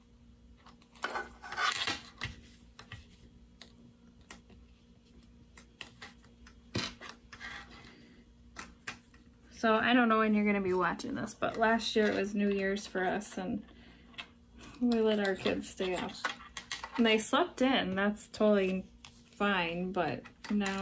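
Fabric rustles and pins click softly as hands handle them.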